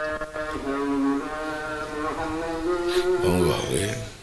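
A middle-aged man chants in a long, drawn-out voice through a microphone.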